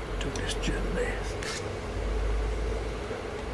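A metal spoon taps lightly against a metal pot.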